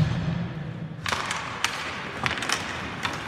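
A puck clacks against hockey sticks.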